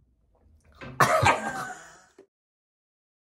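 A young woman cries out loudly close by.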